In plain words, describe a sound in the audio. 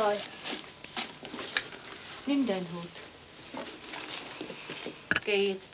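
A woman speaks softly and calmly nearby.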